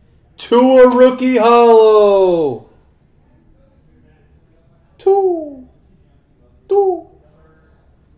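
A man exclaims loudly and with animation close to a microphone.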